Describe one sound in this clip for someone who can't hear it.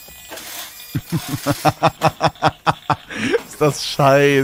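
A young man laughs loudly through a microphone.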